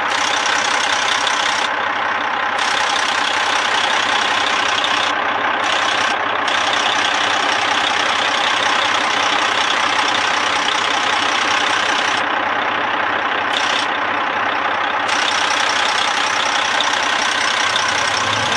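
A diesel truck engine idles with a loud, steady rattling clatter.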